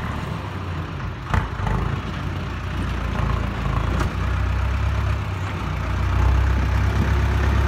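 A diesel farm tractor engine rumbles under load.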